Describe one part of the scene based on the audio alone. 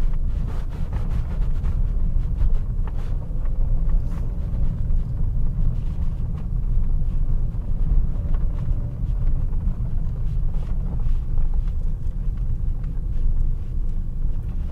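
A car engine rumbles steadily as the car drives along a rough road.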